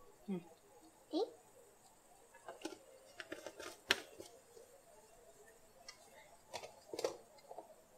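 Plastic blender parts click and knock together.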